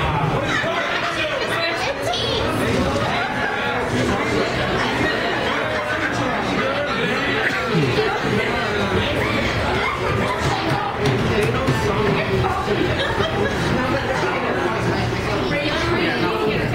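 A crowd of diners chatters loudly all around in a busy room.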